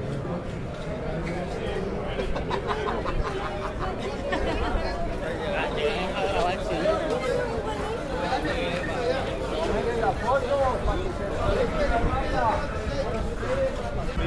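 A crowd of men and women talks and murmurs close by, outdoors.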